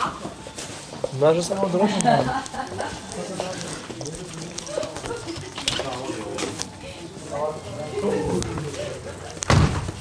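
Several men and women talk and chatter in a room.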